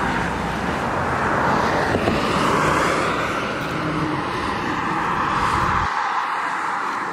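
A car approaches along a road, its tyres humming.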